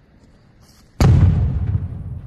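An axe thuds into a tree trunk.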